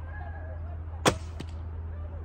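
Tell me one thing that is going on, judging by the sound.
A bowstring snaps as an arrow is shot.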